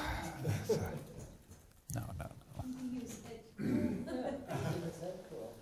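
An elderly man laughs softly.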